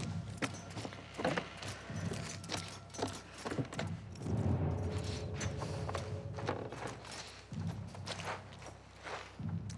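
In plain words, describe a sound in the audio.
Footsteps creak softly on a wooden floor.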